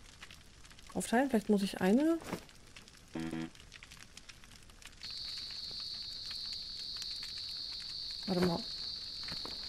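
A young woman speaks briefly with animation into a close microphone.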